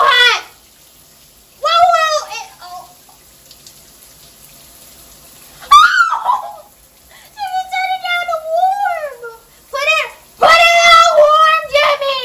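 A young woman talks with animation close by, her voice rising and falling in a sing-song way.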